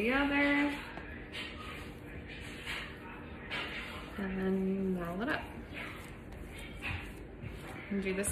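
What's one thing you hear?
Paper crinkles and rustles as it is handled close by.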